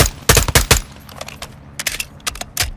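A rifle magazine clicks during a reload.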